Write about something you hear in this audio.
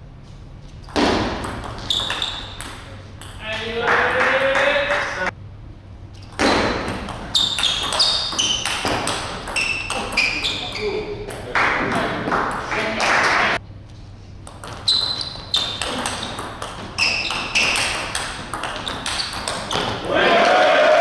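A table tennis ball clicks back and forth off paddles and a table in an echoing hall.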